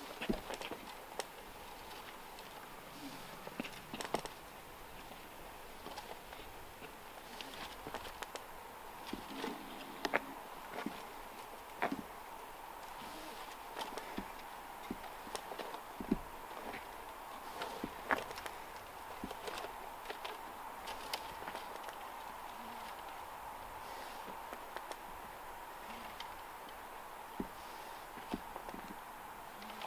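Climbing gear clicks and knocks as a man climbs a tree.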